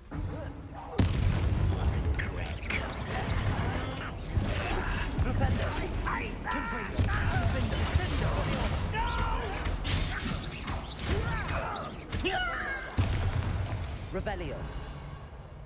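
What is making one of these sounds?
Magic spells crackle and blast during a fight.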